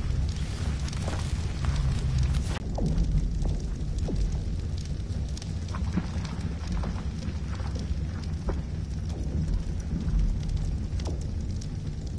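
Soft interface clicks tick again and again.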